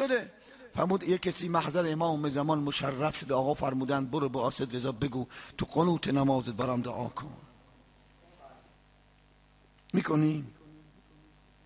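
A man speaks with strong emotion into a microphone, loud and close.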